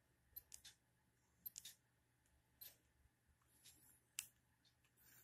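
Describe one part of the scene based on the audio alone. Small plastic buttons click under fingers.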